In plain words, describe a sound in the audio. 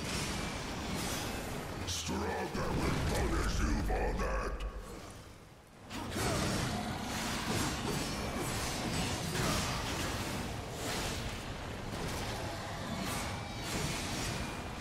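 Blades clash and magic blasts crackle in a loud battle.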